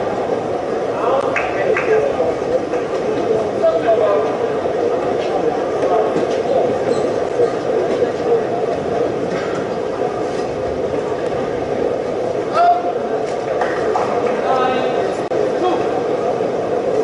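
Rackets strike a shuttlecock back and forth with sharp pops.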